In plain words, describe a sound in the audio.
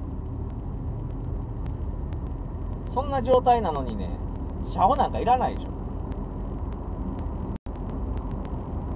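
A car engine rumbles steadily inside the car.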